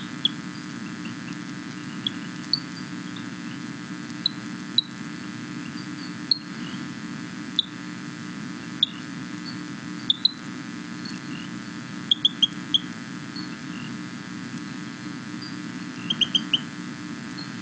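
A small frog chirps in short, sharp, high calls, heard through a loudspeaker.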